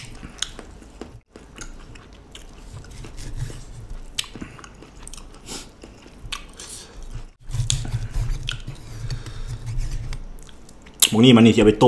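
A knife slices through soft meat on a wooden board.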